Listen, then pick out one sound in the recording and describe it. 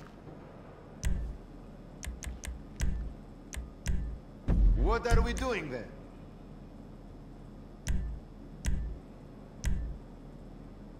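Video game menu sounds click as options are selected.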